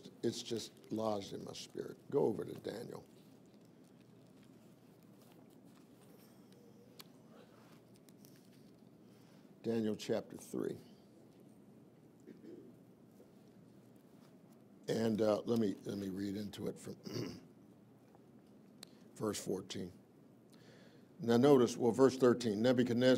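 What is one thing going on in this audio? An older man speaks slowly and earnestly into a microphone, with long pauses.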